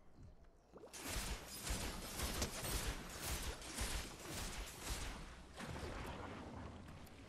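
A game character's footsteps rustle through grass.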